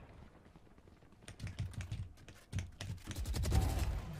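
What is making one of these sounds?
A rifle fires single shots in quick bursts.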